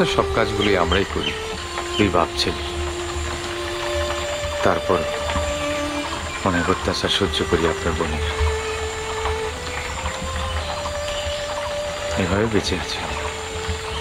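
A young man speaks close by in an emotional tone.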